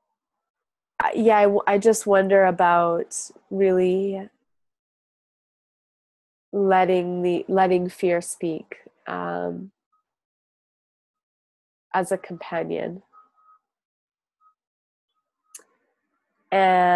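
A young woman speaks calmly over an online call, with pauses.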